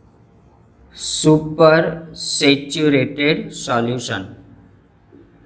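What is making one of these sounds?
A man speaks clearly and calmly, close by.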